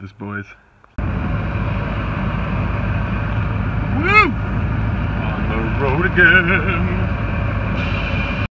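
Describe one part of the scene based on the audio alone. A truck engine idles close by with a steady low rumble.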